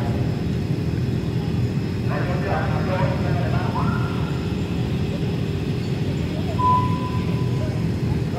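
Motorbike engines idle with a low, steady rumble.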